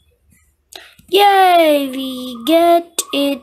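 A young girl shrieks loudly.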